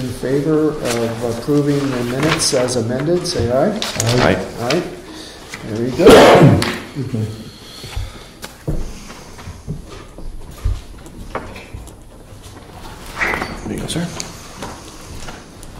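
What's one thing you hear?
Paper rustles as a man handles sheets.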